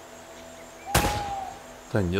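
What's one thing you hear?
A gunshot cracks once.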